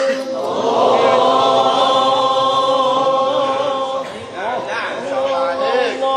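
A young man chants in a long, sustained melodic voice through a microphone, with echo.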